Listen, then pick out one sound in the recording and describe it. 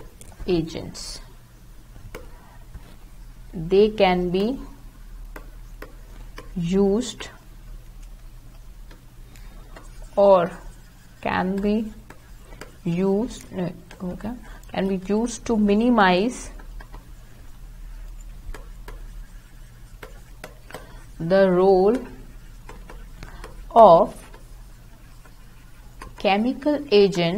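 A young woman speaks calmly and slowly, close to a microphone, pausing often.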